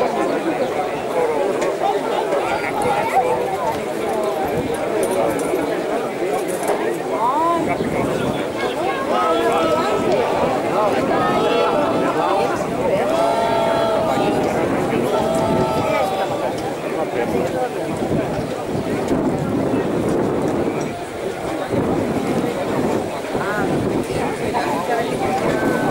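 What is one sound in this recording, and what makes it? A crowd of men talks and shouts outdoors at a distance.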